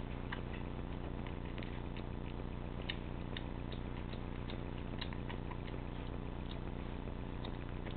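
A kitten eats wet food with quick, smacking licks and chews close by.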